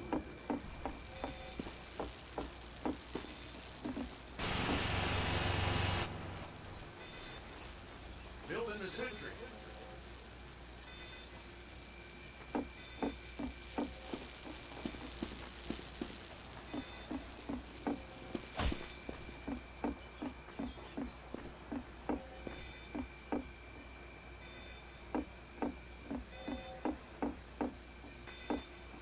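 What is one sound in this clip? Footsteps thud quickly and evenly on hard ground.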